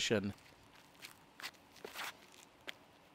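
Shoes scuff and stamp on a concrete pad.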